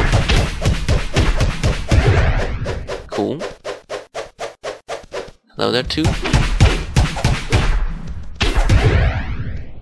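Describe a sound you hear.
Sword strikes land on a creature in quick succession.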